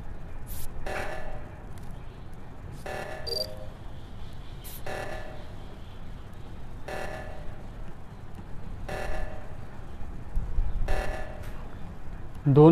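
An alarm blares in repeated pulses.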